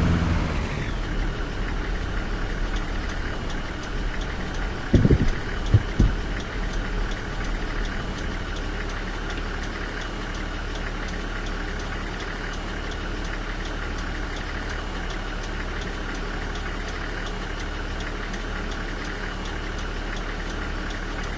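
A truck engine idles with a low, steady hum.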